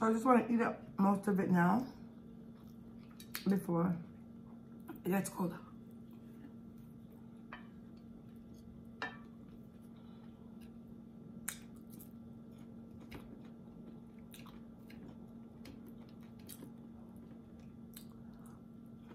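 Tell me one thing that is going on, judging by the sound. A fork clinks and scrapes on a plate.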